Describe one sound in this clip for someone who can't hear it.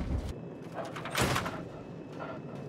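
A metal door opens.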